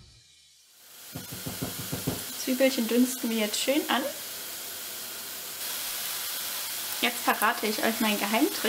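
Onions sizzle in a hot pan.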